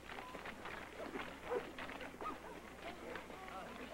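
A man shouts with exertion nearby.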